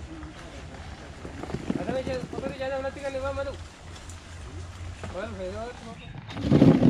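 A plastic basket rattles and scrapes on the ground.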